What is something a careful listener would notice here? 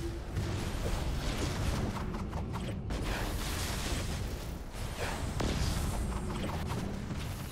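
Electric blasts crackle and zap in quick bursts.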